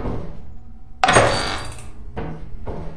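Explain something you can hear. A heavy metal door swings open.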